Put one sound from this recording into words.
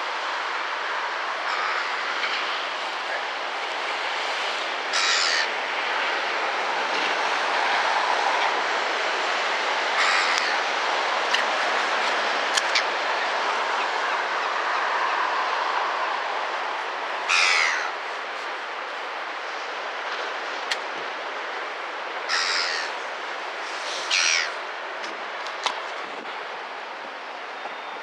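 Wind blows steadily outdoors, buffeting close by.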